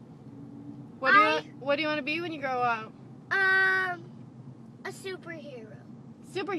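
A young boy sings close by, in a clear high voice.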